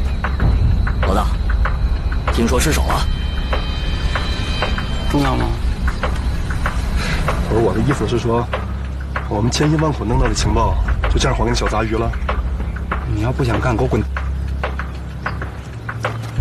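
A man speaks sharply, close by.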